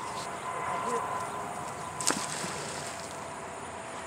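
A magnet on a rope splashes into water.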